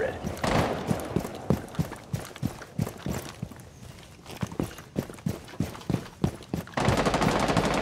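Footsteps tread quickly over dirt and gravel.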